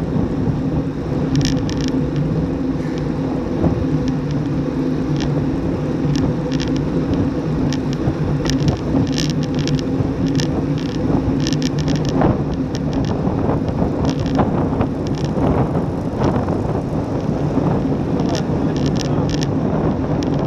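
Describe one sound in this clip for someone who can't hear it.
Bicycle tyres hum on smooth road.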